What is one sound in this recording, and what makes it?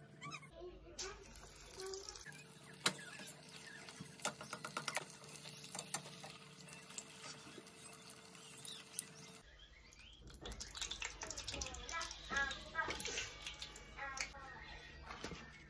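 Hot oil sizzles and crackles as a patty fries.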